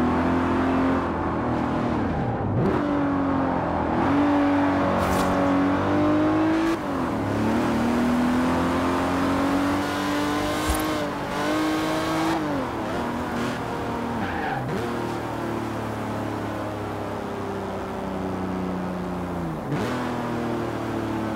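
Tyres hiss on a wet, icy road.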